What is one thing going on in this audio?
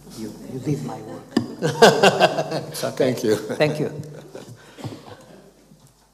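A second elderly man laughs and chats.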